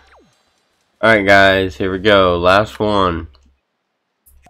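A short, loud sweeping melody plays.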